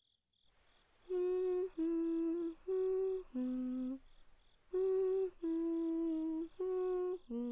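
A simple melody of sustained notes plays.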